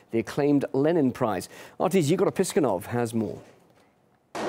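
A man speaks calmly into a microphone, like a news presenter.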